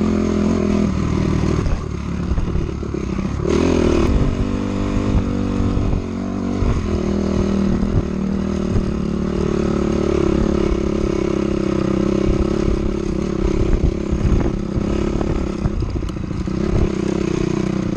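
Tyres rumble and bump over a rough dirt track.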